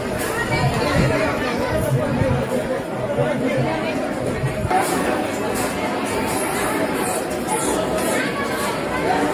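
A crowd of people murmurs and chatters nearby.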